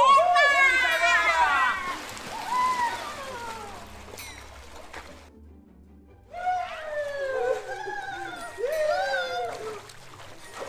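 Young children shout and squeal excitedly nearby.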